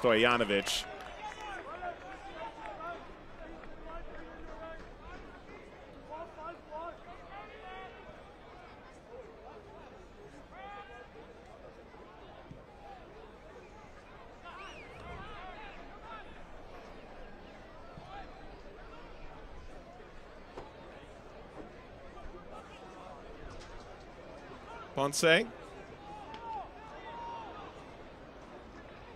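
A crowd murmurs in an open-air stadium.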